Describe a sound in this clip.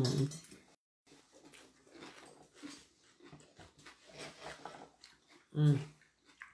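A woman chews food with her mouth close to the microphone.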